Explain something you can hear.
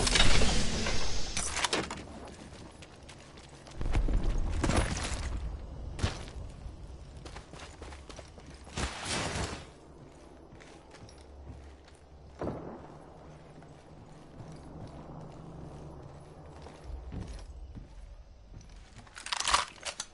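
Items are picked up with short clicking rattles.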